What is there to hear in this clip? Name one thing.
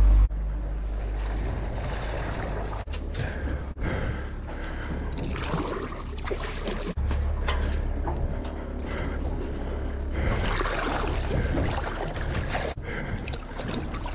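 A fish slaps into the water with a splash.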